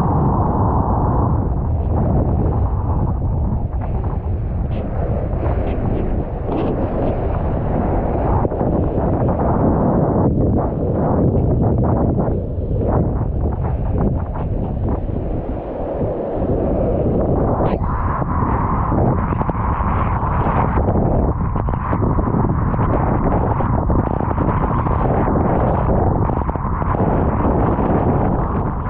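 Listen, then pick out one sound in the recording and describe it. Strong wind buffets the microphone throughout.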